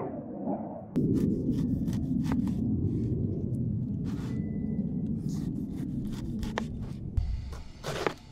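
A knife saws through a tough pineapple rind.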